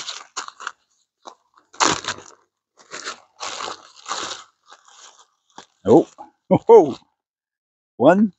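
A plastic bag crinkles in a man's hands.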